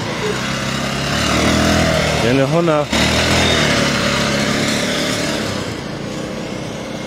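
A motorcycle engine roars as it passes close by.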